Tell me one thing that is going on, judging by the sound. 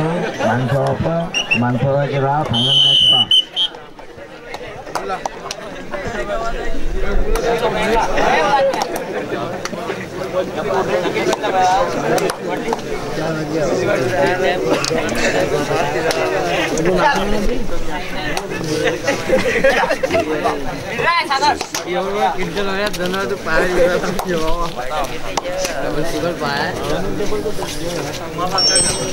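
A large crowd of spectators chatters and cheers outdoors.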